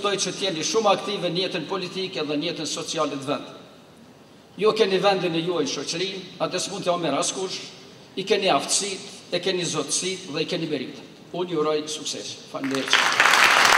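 An elderly man speaks steadily into a microphone, heard over loudspeakers in a large hall.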